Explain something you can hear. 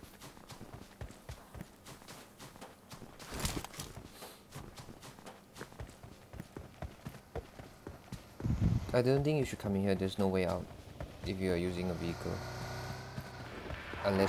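Footsteps crunch quickly on snowy ground.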